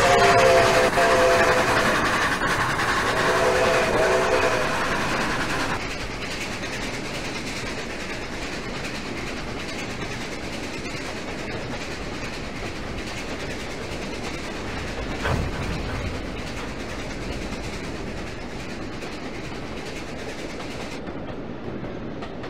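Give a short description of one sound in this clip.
Train carriages rumble and clatter steadily along the rails.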